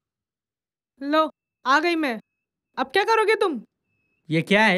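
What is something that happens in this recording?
A young woman speaks close by in a firm tone.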